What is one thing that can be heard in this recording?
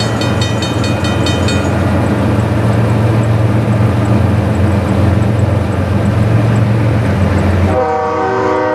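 A train rumbles past at a crossing.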